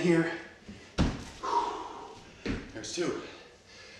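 Hands and feet thump softly on a wooden floor.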